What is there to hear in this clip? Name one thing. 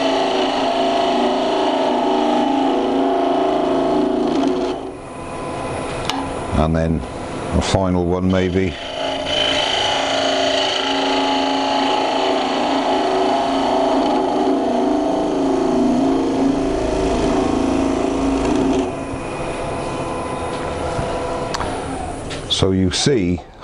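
A wood lathe spins with a steady hum.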